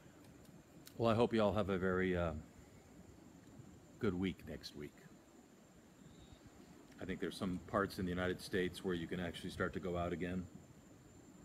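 A middle-aged man speaks close by, calmly, in short bursts.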